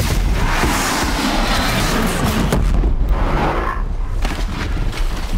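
A large fire explosion roars and crackles.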